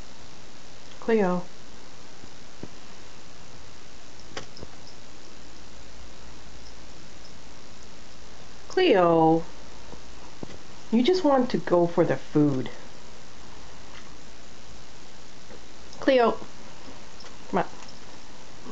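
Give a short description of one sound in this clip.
A cat meows loudly nearby, again and again.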